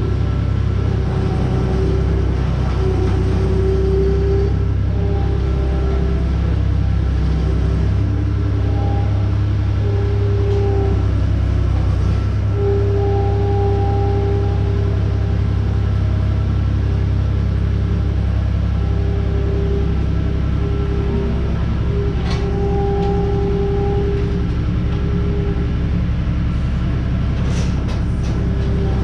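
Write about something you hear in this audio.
A skid steer loader's diesel engine rumbles and whines steadily nearby.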